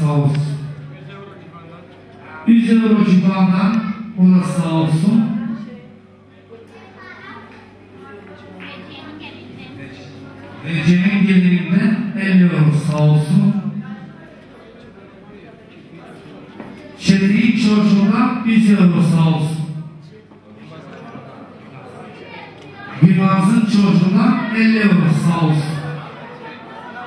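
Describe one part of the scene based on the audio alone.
A young man sings loudly into a microphone through a loudspeaker, in bursts.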